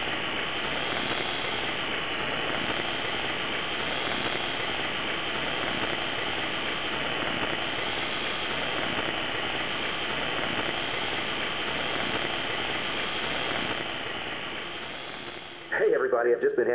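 Loud radio static hisses steadily, with a faint wavering whine.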